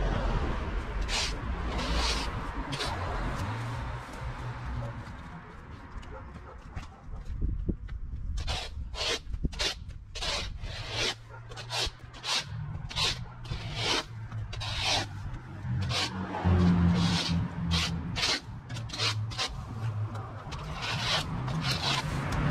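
A rake scrapes repeatedly through dry cut grass.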